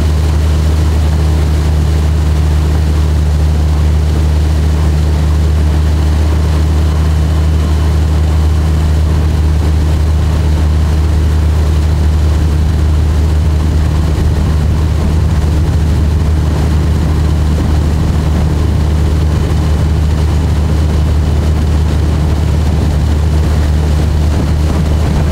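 A four-stroke outboard motor drones at speed.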